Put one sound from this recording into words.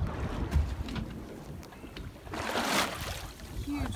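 A shark splashes into the water beside a boat.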